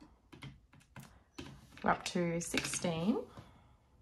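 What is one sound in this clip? Calculator buttons click as they are pressed.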